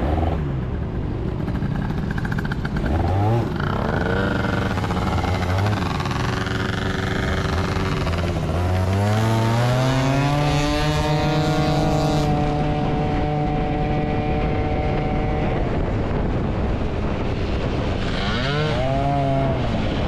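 A motorcycle engine revs up and down as it accelerates.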